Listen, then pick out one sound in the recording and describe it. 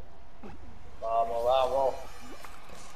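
A bright musical chime rings out as a countdown ends.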